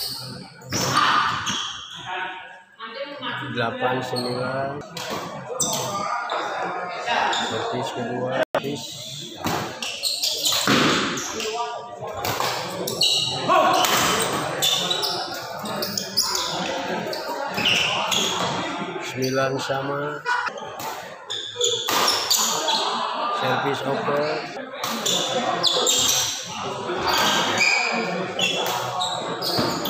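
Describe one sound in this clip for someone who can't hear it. Rackets strike a shuttlecock back and forth in a large echoing hall.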